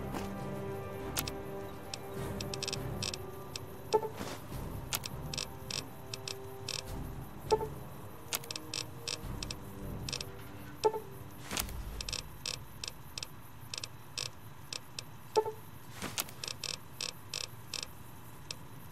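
Game menu clicks tick quickly as a list scrolls.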